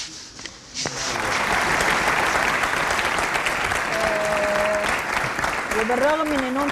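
A studio audience applauds loudly.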